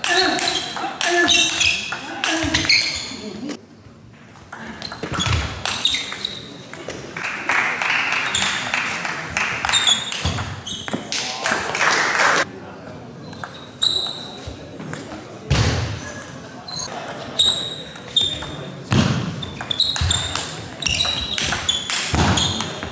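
A ping-pong ball clicks rapidly back and forth off paddles and a table in an echoing hall.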